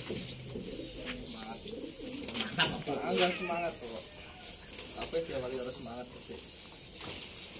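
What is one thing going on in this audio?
A young man talks calmly close by, outdoors.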